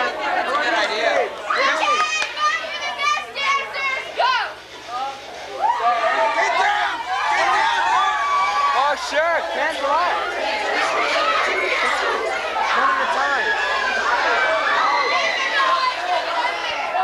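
A crowd of young people chatters and shouts excitedly close by.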